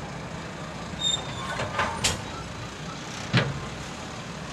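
Train wheels squeal and clank against the rails.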